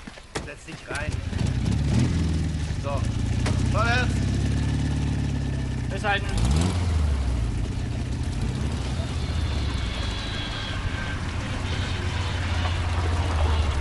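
A car engine rumbles as a car pulls away and drives off.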